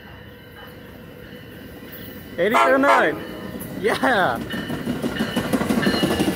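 A train rumbles as it approaches and passes.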